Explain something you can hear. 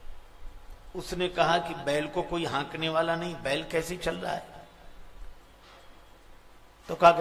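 An elderly man sings through a microphone in a drawn-out, melodic voice.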